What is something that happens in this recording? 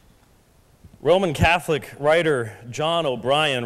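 A man speaks with animation through a loudspeaker in a large hall.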